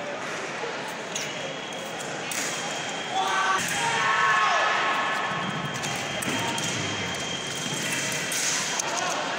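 Fencing blades clash and scrape together.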